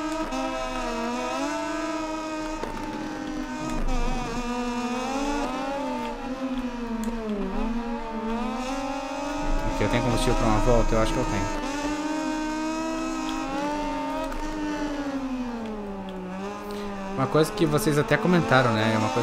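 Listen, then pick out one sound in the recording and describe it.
A motorcycle engine whines at high revs, rising and falling as it shifts gears.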